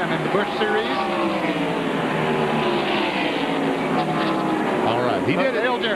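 Race car engines roar loudly, their pitch gliding as the cars speed past.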